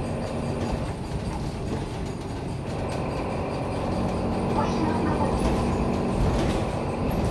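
A bus engine rumbles steadily while the bus drives along.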